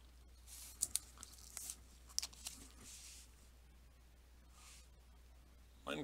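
A plastic card case clicks and rustles in someone's hands.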